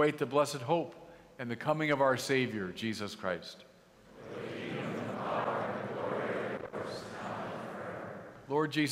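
An older man sings out a prayer through a microphone in a large echoing hall.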